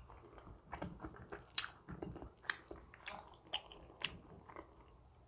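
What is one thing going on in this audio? Crusty pastry crackles as it is torn apart by hand.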